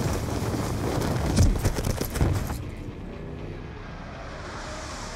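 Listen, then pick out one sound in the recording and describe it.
Wind rushes loudly past during a fall.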